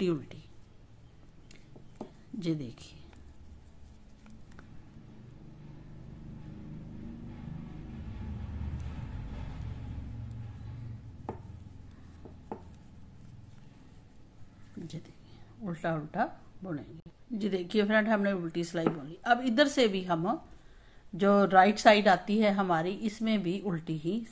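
Knitting needles click and tap softly.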